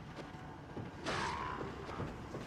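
A heavy blow thuds against a body.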